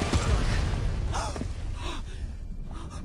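A man cries out.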